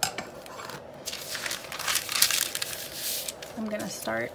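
Parchment paper rustles and crinkles as it is handled.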